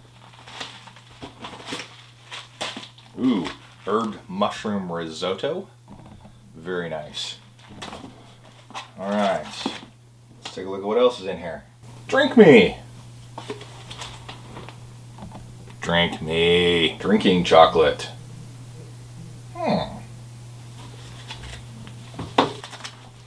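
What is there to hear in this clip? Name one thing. Plastic packets crinkle and rustle in a man's hands.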